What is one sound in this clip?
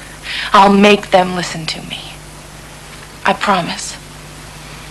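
A young woman speaks quietly and earnestly nearby.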